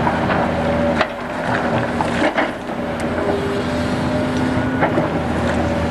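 Gravel and earth scrape and crunch under an excavator bucket.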